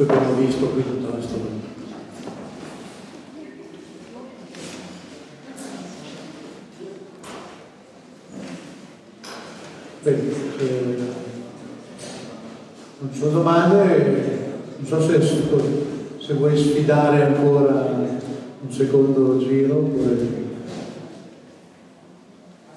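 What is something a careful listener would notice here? An elderly man speaks with animation into a microphone, heard through loudspeakers in an echoing hall.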